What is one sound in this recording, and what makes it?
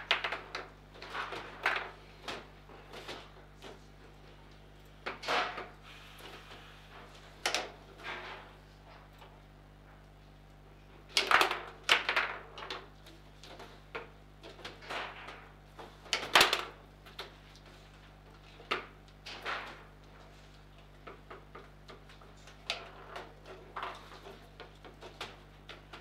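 A foosball ball knocks and clacks against plastic players and table walls.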